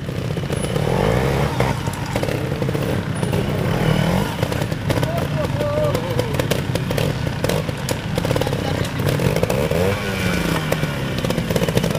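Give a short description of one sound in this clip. Tyres crunch over dry leaves and rocks.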